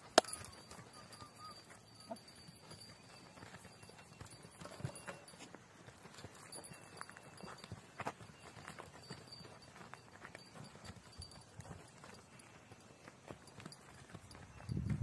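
Donkeys' hooves shuffle and scrape on dry dirt.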